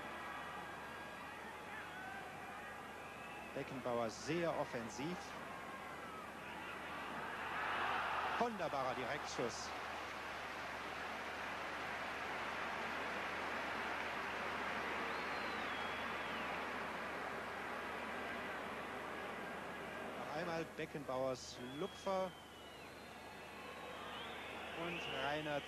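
A large stadium crowd roars and swells.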